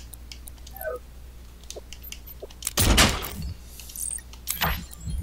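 Soft electronic clicks and blips sound as items are selected in a game.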